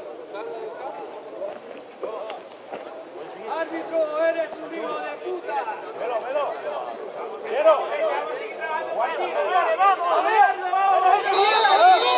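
Several men call out and shout outdoors at a distance.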